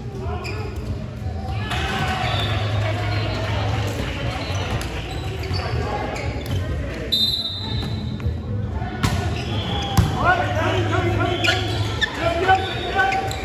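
Young men shout and call out to each other in a large echoing hall.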